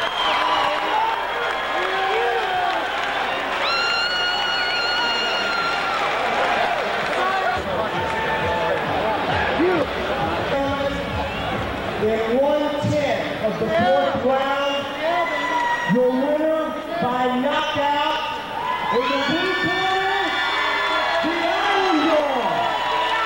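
A man shouts excitedly nearby.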